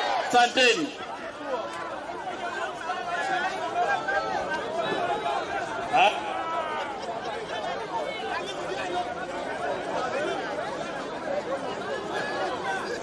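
A crowd murmurs and chatters nearby.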